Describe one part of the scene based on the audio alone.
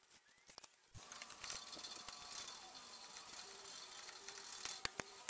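A knife scrapes along a window frame.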